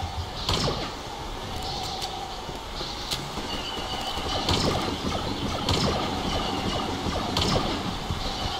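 A rifle fires loud, sharp shots every second or so, each with a ringing echo.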